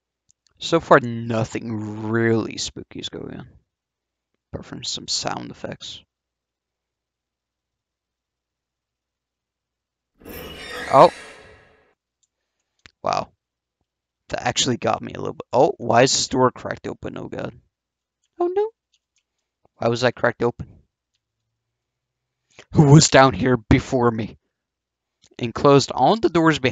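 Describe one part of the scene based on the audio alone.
A young man talks with animation into a close headset microphone, in bursts with pauses.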